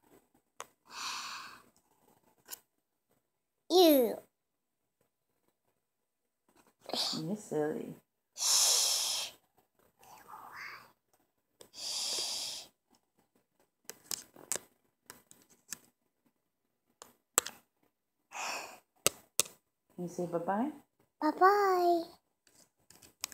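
A little girl talks and babbles close to the microphone.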